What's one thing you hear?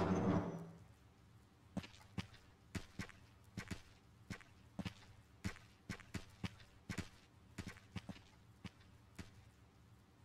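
Footsteps click steadily on a hard floor.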